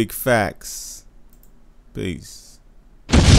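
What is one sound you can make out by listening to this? A man speaks in short bursts, close to the microphone.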